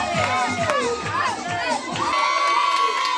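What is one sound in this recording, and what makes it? A group of young men shout and cheer loudly.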